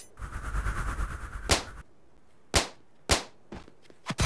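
Balloons pop with sharp bursts.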